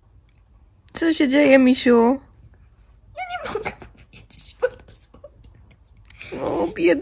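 A young girl sobs and wails close by.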